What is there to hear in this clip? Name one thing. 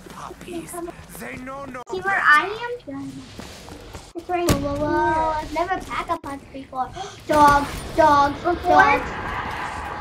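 A young child talks excitedly close to a microphone.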